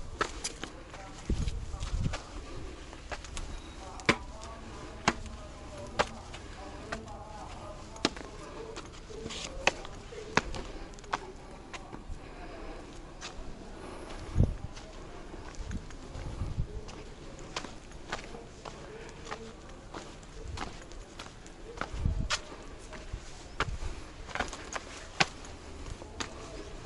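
Footsteps scuff on stone steps and paving close by.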